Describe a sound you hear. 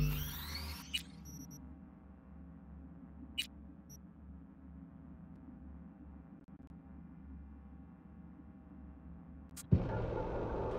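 Short electronic clicks sound as menu options are selected.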